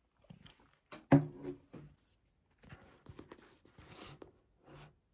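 Book pages rustle as a hand handles a paperback.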